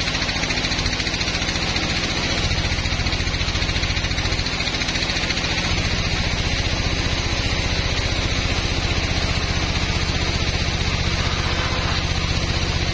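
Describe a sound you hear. A large sawmill band saw cuts through a teak log with a steady whine and hum.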